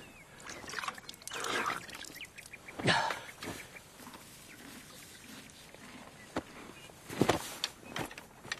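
A young woman pants and gasps for breath.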